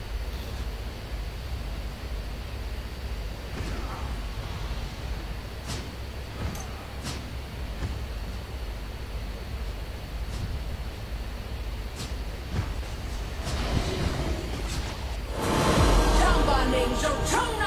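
Game sound effects whoosh and clash in bursts.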